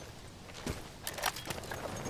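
Wind blows through trees outdoors.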